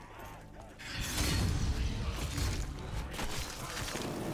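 A deep explosion booms and rumbles.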